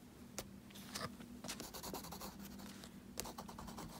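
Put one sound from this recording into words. A crayon scratches across paper.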